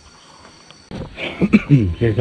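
A middle-aged man speaks close to a microphone.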